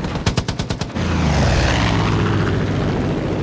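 A plane roars past close by.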